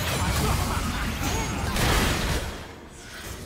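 Magic spells crackle and burst in a fast game battle.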